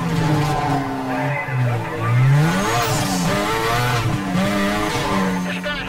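A police siren wails close by.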